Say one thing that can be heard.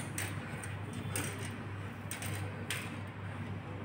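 A wire basket rattles and scrapes against a hard floor.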